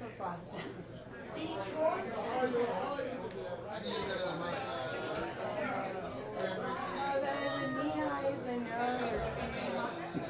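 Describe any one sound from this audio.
Electric guitars play.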